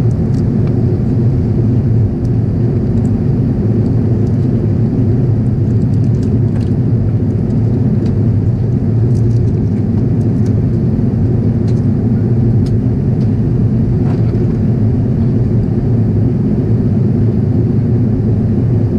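Jet engines roar in a low, steady drone inside an airliner cabin.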